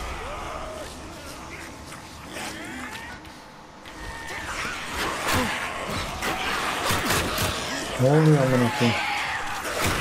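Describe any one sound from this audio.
A horde of creatures snarls and shrieks as it rushes closer.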